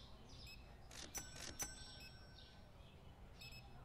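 A cardboard box is picked up with a soft knock.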